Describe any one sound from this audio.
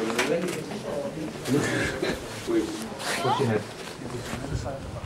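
Young people chat casually nearby.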